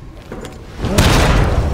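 A monster roars loudly and close by.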